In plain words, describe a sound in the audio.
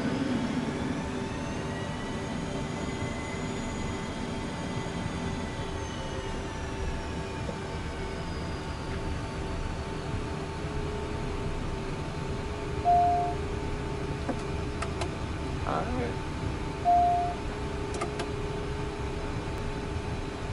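An aircraft engine hums steadily, heard through a headset.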